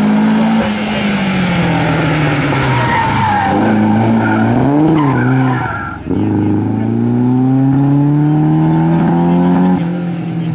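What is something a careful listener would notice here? A rally car engine roars loudly close by.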